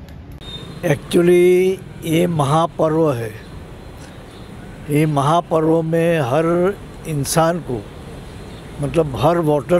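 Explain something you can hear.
An elderly man speaks calmly into microphones close by.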